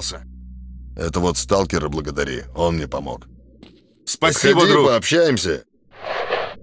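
A man speaks in a gruff voice close by.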